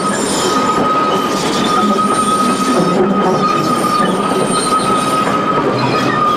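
A small diesel locomotive engine chugs steadily close by.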